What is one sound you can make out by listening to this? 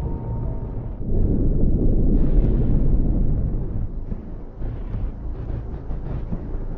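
A spaceship engine rumbles with a deep, steady roar.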